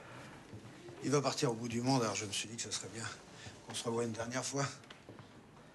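An elderly man speaks with animation, close by.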